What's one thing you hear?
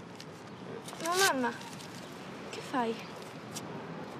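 A girl asks a question in a quiet, upset voice.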